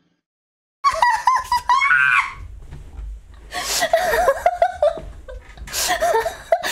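A young woman speaks with animation in a high, playful voice, close to a microphone.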